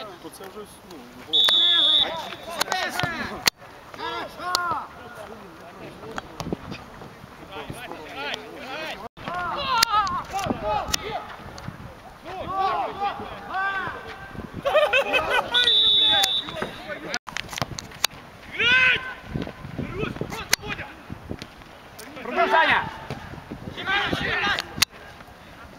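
Men shout and call to each other across an open outdoor field.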